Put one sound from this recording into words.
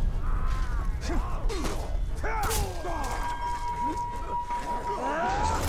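Blades clash and strike in a fast fight.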